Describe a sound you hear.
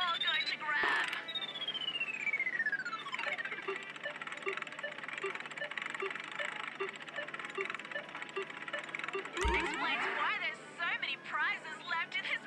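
Arcade machines play bright electronic chirps and jingles.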